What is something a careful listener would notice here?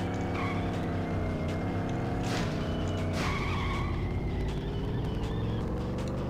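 A game car engine's revs drop as the car slows for a turn.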